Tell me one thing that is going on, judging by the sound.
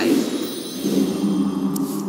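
A magical shimmering sound effect rings out.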